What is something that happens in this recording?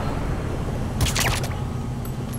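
A suppressed gun fires a shot.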